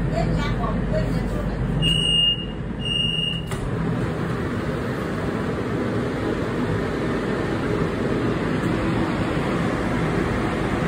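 A steady low hum and murmur fill a large echoing space.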